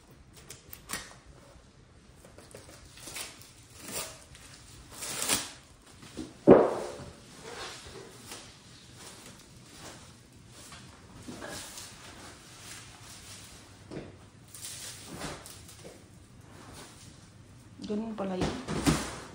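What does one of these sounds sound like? Plastic film crinkles and rustles as a roll is handled.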